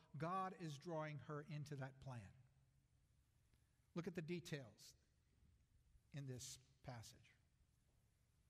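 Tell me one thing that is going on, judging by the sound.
An older man speaks calmly through a microphone, with pauses.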